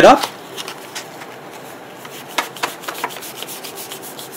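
Paper rustles and crinkles as it is rolled up.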